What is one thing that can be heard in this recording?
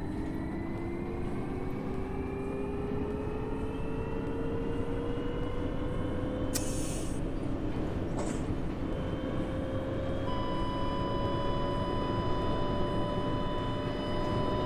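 A bus engine hums and slowly rises in pitch as the bus speeds up.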